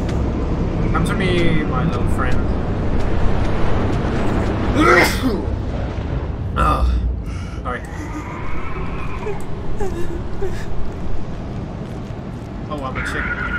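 A young man talks and exclaims close to a microphone.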